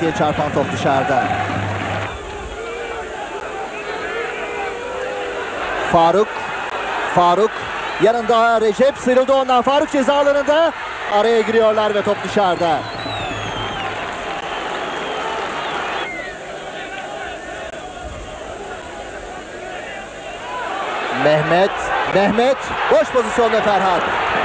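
A large crowd murmurs and roars in an open stadium.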